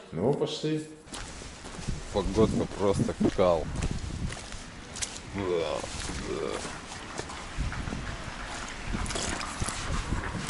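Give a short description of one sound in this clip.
Footsteps tread on wet pavement at a steady walking pace.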